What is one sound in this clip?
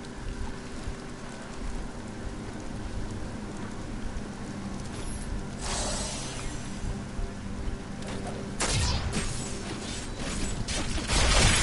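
Swords clash and bones rattle in a fierce fight.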